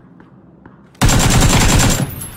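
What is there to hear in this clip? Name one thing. A rifle fires a rapid, loud burst of shots.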